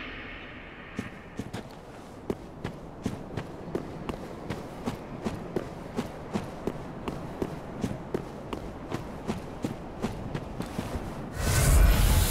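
Armoured footsteps crunch steadily over dry ground.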